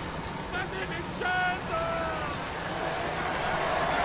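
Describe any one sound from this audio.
A crowd cheers along the roadside.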